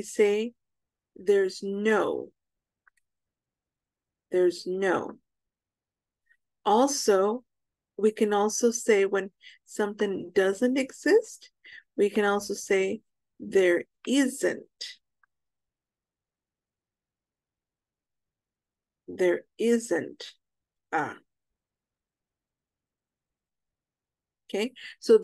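A young woman speaks clearly over an online call, as if teaching.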